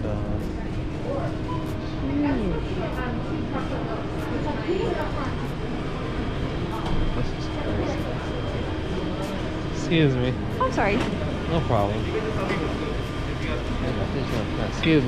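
A crowd of adults chatters nearby.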